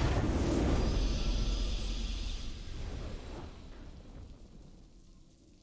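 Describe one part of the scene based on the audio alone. A triumphant fanfare swells loudly and then fades away.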